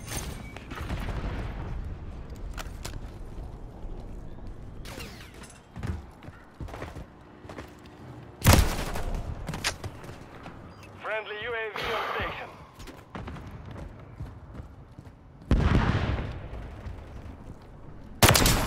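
A rifle fires loud, booming shots that echo.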